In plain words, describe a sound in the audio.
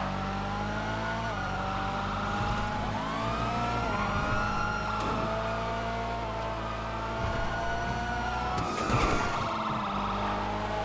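A car engine roars at high revs, rising and dropping in pitch as gears change.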